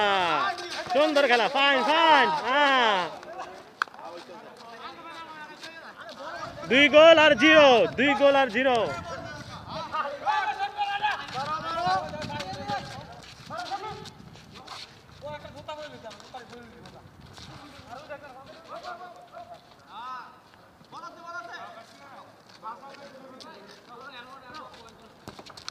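Young men call out and talk excitedly at a distance.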